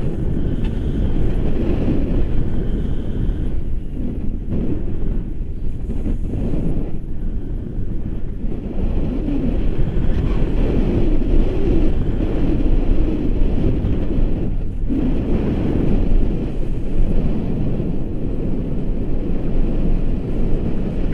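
Strong wind buffets the microphone steadily throughout.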